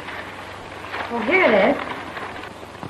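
A woman cries out in a high, swooping voice.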